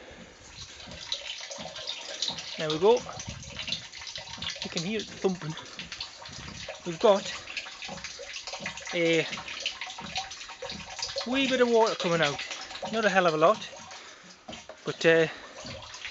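Water trickles from a hose and splashes into a tank below.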